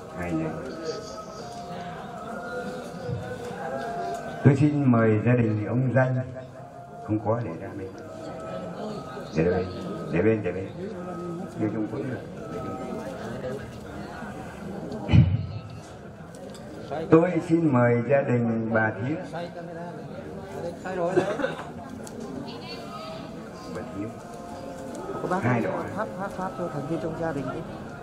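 A middle-aged man speaks steadily into a microphone over a loudspeaker, in an echoing room.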